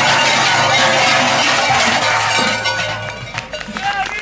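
A band plays loudly through loudspeakers and comes to an end.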